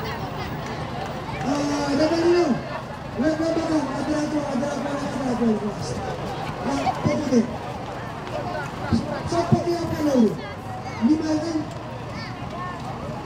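A crowd murmurs in the open air.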